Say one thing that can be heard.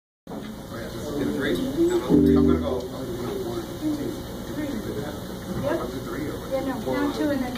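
A saxophone plays along.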